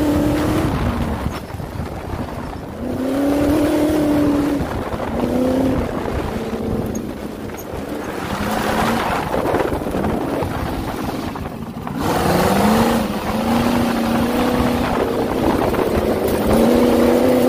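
An engine roars close by, revving up and down over and over.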